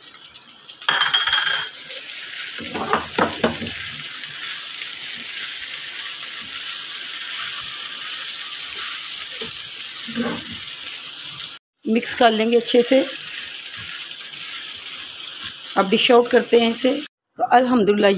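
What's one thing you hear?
A spatula scrapes and stirs in a frying pan.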